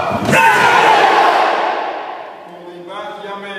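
A group of men shouts together sharply, echoing in a large hall.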